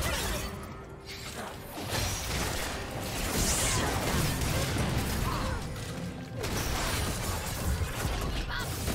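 Video game spell effects whoosh and crackle during a battle.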